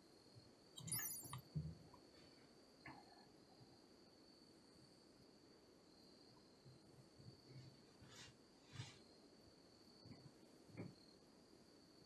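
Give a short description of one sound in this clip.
A man speaks quietly into a close microphone in short bursts.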